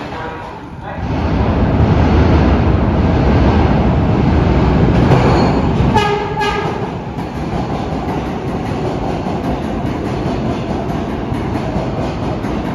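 A subway train rumbles loudly into the station.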